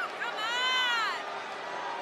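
A large crowd cheers in an echoing arena.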